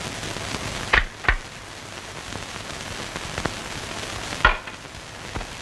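Book pages rustle as they are flipped.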